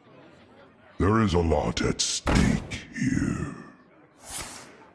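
A game card lands on the board with a thud.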